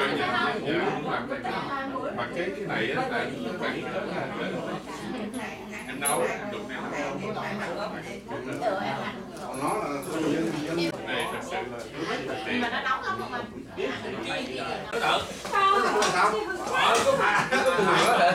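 Many voices murmur in a busy room.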